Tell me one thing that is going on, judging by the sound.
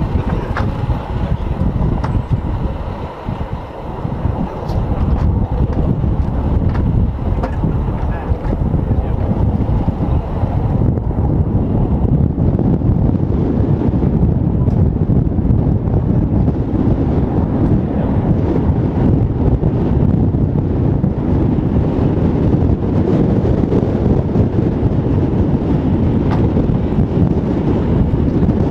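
A helicopter engine idles with a steady low rumble.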